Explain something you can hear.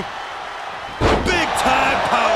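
A wrestler slams down hard onto the ring mat with a heavy thud.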